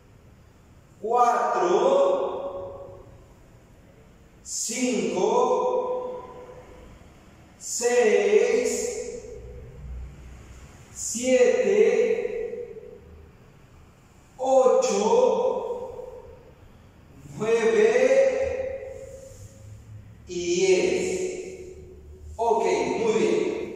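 A young man calls out loudly in short bursts, in an echoing room.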